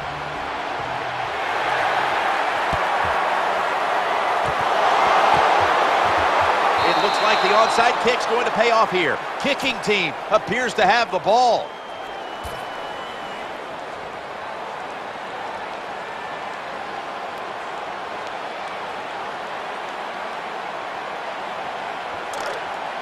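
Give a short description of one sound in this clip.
A large stadium crowd roars and cheers.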